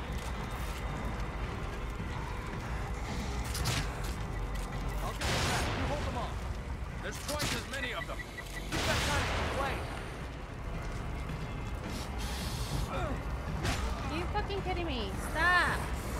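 A young woman talks into a headset microphone.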